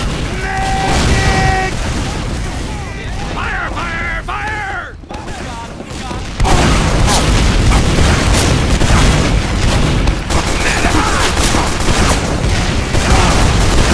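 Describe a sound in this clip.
Rockets fire and explode with loud booms.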